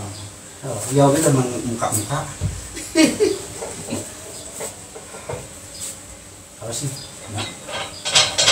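Metal weights clank and knock.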